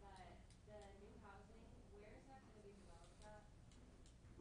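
A man and a woman talk quietly at a distance.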